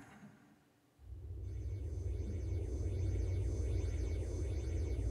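A character flies through the air with a rushing wind sound.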